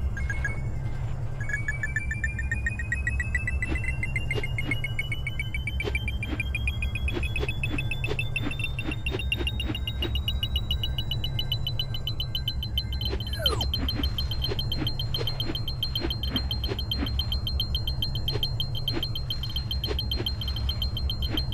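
Coins chime rapidly as they are collected.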